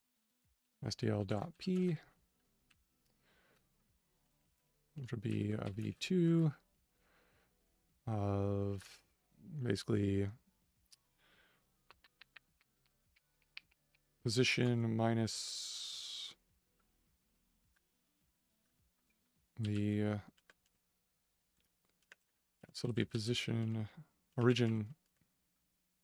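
A man speaks calmly in short bursts, close to a microphone.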